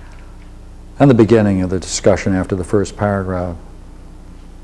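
An elderly man reads aloud calmly, close by.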